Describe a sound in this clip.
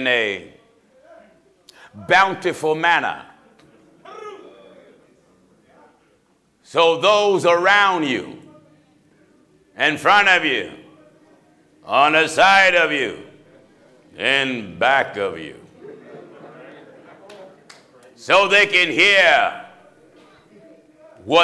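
A man preaches with fervour into a microphone, in bursts with pauses, in a large echoing hall.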